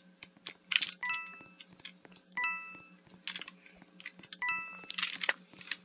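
A bright chime rings out several times.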